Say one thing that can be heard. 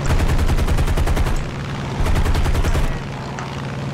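Aircraft machine guns fire in rapid bursts.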